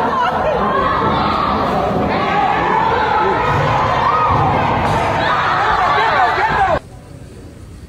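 A crowd of men and women shouts and clamours loudly, close by.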